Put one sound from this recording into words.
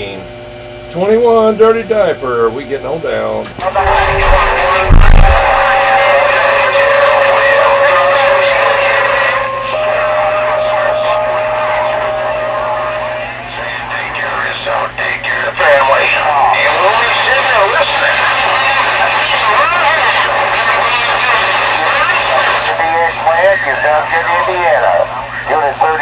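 A radio receiver whistles and warbles with shifting tones.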